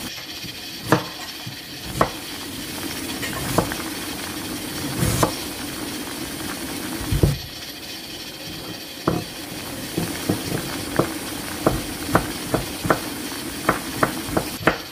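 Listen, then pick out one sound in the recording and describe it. Water boils and bubbles vigorously in a pot, with frequent pops.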